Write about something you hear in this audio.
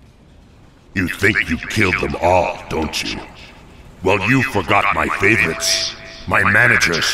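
A man speaks in a deep, gruff voice close by.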